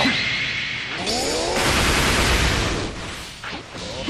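Energy blasts roar and crackle in quick bursts.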